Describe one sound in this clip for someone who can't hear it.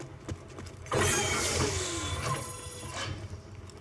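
A heavy metal chest clanks and creaks open.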